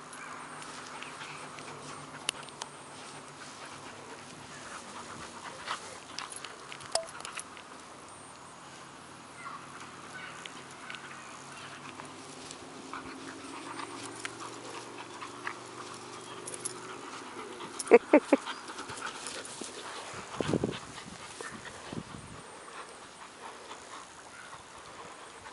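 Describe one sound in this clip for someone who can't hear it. Two dogs growl as they tug at a rope toy.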